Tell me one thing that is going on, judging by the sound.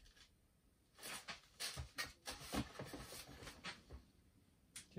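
A cardboard box is handled.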